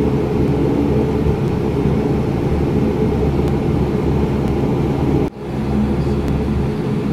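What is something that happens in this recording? A jet engine roars loudly and steadily close by.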